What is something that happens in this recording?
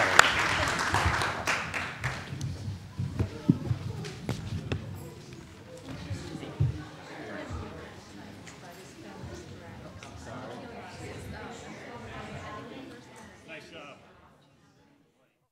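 A crowd of men and women chatters in a large room.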